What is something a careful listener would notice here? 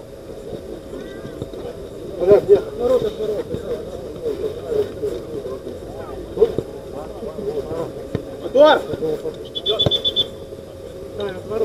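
Young men shout and call out to each other across an outdoor pitch.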